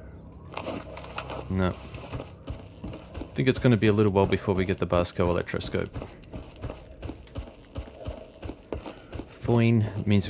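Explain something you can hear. Footsteps crunch on gravel and concrete.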